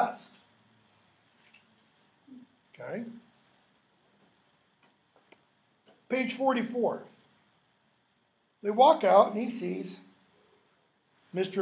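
An older man speaks calmly in short bursts, close by.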